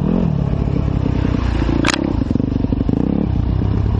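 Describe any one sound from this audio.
A motorbike splashes through a muddy puddle.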